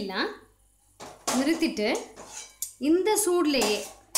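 A metal wok clanks down onto a gas stove.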